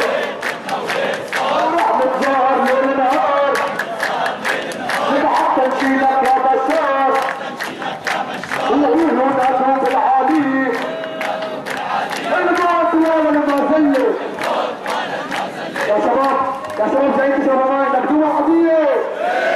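A crowd of men claps in rhythm.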